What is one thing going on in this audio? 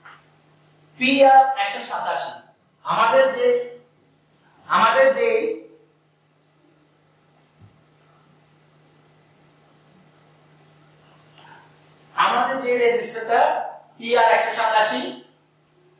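A man explains calmly, close by, in short phrases with pauses.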